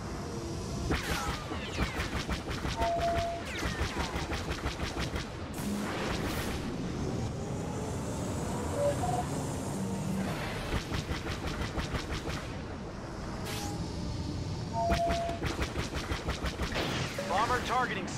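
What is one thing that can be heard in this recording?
Rapid laser blasts fire in bursts.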